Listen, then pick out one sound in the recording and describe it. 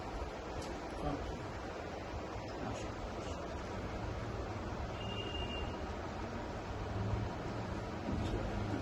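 Several men talk quietly nearby.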